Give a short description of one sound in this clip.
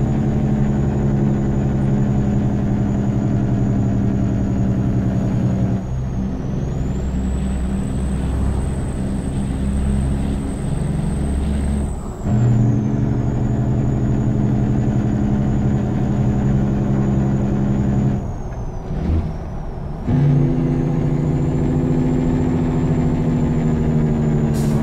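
A heavy diesel truck engine drones under load, with brief dips in its pitch and level.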